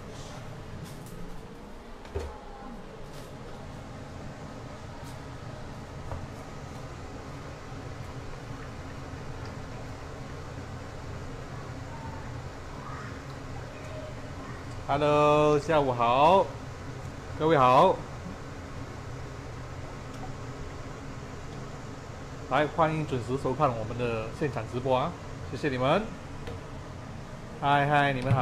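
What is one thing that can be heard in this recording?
Food sizzles and hisses in a hot pan.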